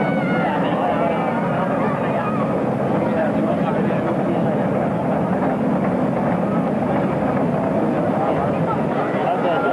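A crowd of young riders chatters and calls out excitedly.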